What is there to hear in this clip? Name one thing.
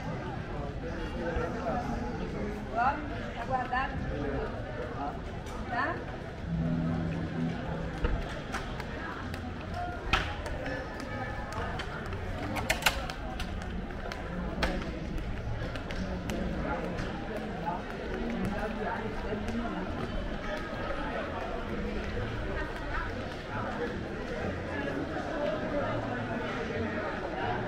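People chat in the distance outdoors.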